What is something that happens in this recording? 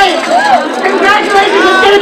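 A small crowd claps.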